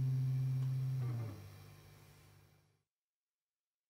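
An electric guitar plays a low sustained note that fades into silence.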